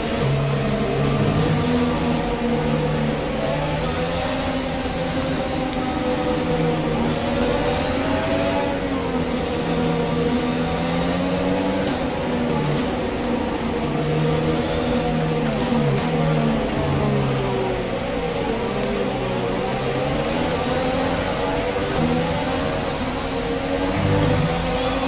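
A racing car engine whines and revs up and down.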